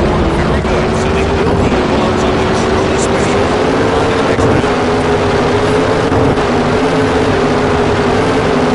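A race car engine roars loudly at full throttle.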